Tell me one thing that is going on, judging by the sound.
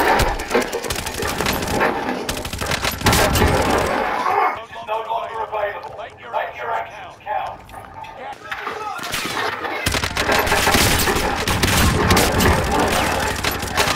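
A heavy machine gun fires rapid bursts of loud shots.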